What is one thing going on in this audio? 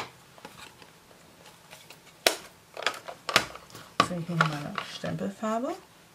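A plastic case clicks open.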